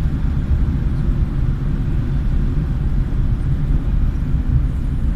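Tyres hum on a wet road.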